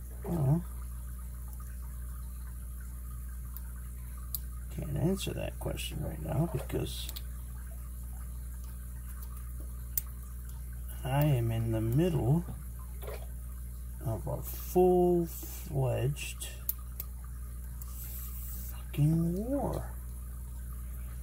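Small metal picks scrape and click inside a padlock.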